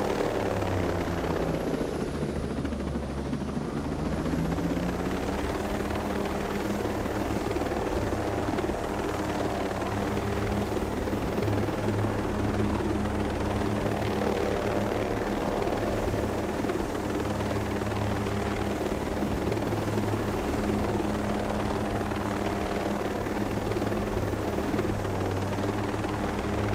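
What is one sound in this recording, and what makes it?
A helicopter's engine whines steadily close by.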